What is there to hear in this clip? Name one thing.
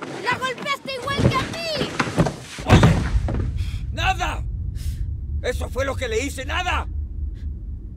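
A man shouts angrily up close.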